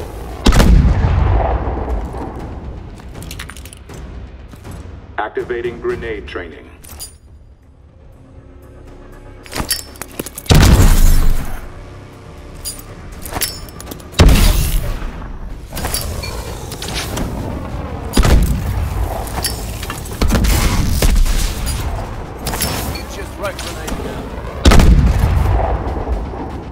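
Grenades explode one after another with loud, echoing booms.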